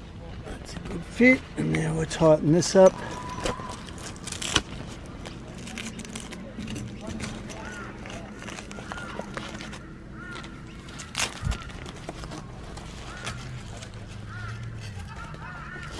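Tent canvas rustles and knocks as hands adjust an awning pole.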